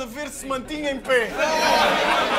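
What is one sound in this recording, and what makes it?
A young man raps forcefully at close range.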